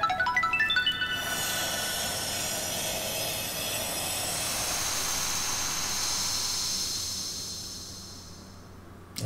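A bright magical shimmer swells and slowly fades.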